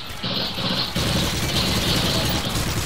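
Automatic gunfire rattles rapidly.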